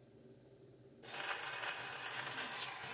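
A steel needle hisses and crackles in the groove of a spinning shellac 78 record on a wind-up gramophone.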